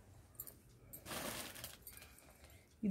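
Cloth rustles as it is laid down.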